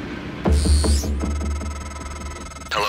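A phone ringtone chimes in a steady electronic pattern.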